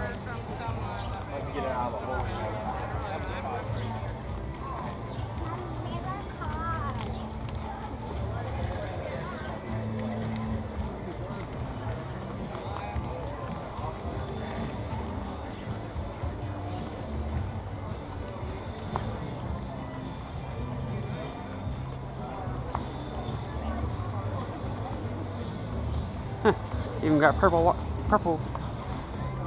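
A crowd of men and women chatters outdoors nearby and in the distance.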